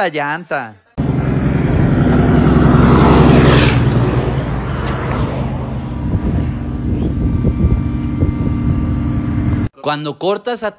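A car engine runs.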